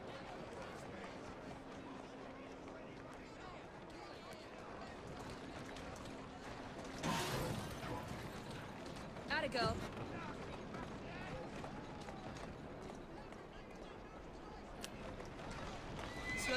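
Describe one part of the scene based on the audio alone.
Carriage wheels rattle over cobblestones.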